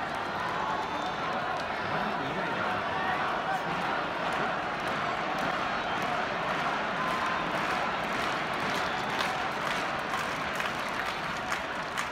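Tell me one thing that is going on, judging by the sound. A large stadium crowd murmurs and chatters steadily all around.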